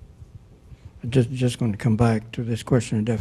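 An elderly man speaks into a handheld microphone.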